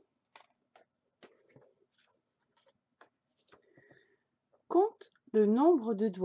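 A card is slid and set down on a wooden table.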